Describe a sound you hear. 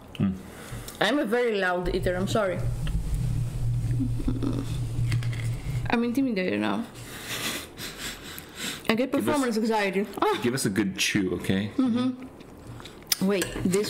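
A young woman talks casually close to a microphone.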